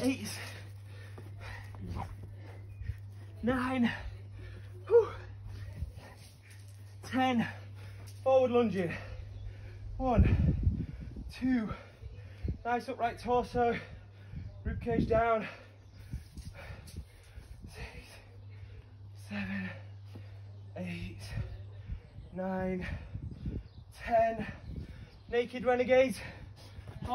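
A man talks with energy, close by, outdoors.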